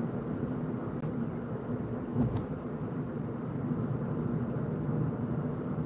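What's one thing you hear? A car engine hums steadily while driving on a highway.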